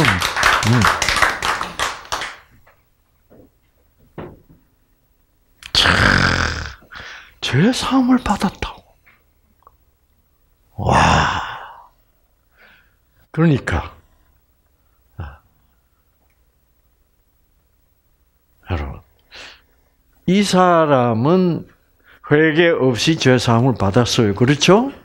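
An elderly man speaks with animation through a headset microphone, pausing often.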